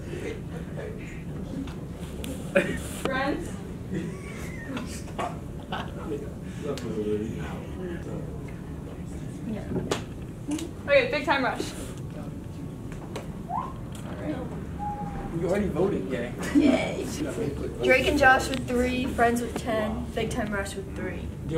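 Teenagers talk and laugh around the room.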